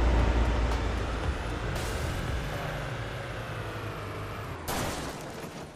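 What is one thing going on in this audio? A car engine hums and revs.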